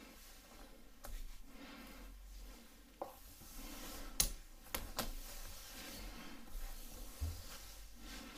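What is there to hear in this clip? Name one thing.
Scissors snip through hair close by.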